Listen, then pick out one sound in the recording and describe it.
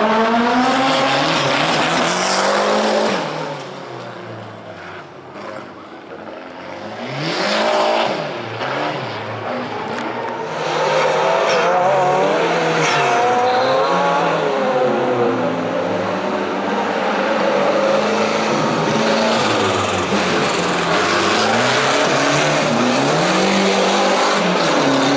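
A rally car engine revs hard, rising and falling in pitch close by, then fading briefly into the distance.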